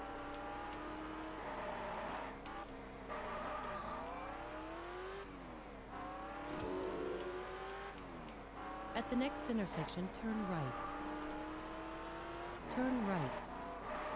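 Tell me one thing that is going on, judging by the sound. A car engine revs up and down as gears change.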